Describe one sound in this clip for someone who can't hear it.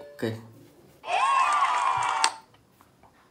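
A cheerful victory jingle plays from a phone speaker.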